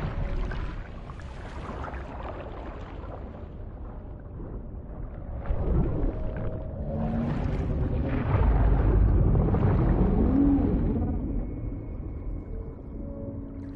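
Bubbles gurgle and rise through deep water.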